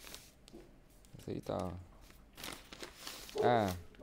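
A paper envelope rustles and crinkles in a hand.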